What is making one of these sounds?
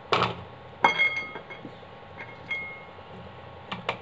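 Potato pieces clatter in a glass bowl.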